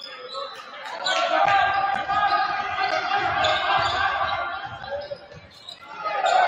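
A crowd cheers in a large echoing gym.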